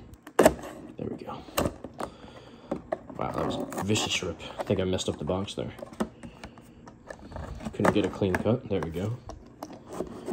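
Cardboard boxes tap and scrape as they are handled.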